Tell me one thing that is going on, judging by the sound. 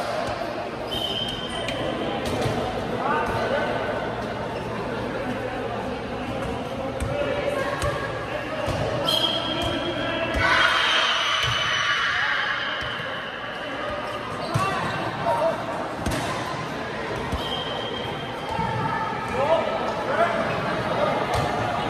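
Men call out and chatter across a large echoing hall.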